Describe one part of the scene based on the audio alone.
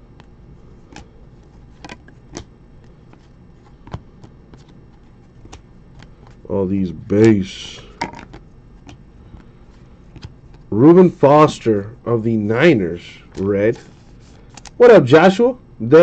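Trading cards click and rustle as they are handled and shuffled.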